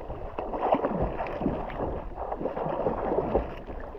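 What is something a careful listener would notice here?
Water splashes loudly as a swimmer kicks.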